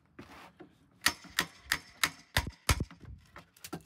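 Metal knocks sharply in quick, regular blows outdoors.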